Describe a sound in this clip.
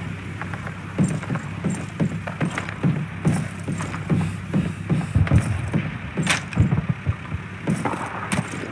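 Heavy footsteps thud on wooden boards.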